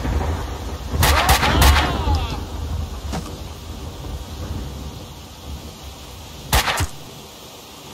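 Heavy melee blows land with sharp thuds.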